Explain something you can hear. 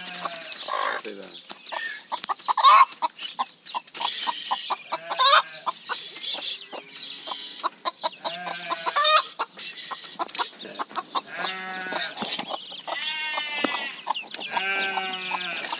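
A hen clucks close by.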